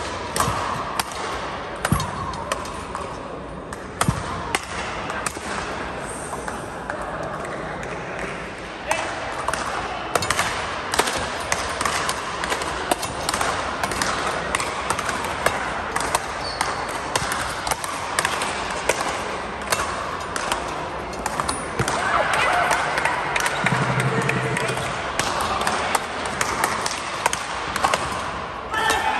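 Paddles hit a ball with sharp pops.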